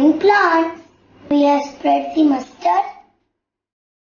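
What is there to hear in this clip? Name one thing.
A young girl speaks clearly and calmly, close by.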